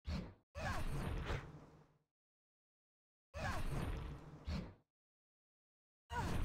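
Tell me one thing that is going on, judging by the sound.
A magic spell whooshes and crackles in short bursts.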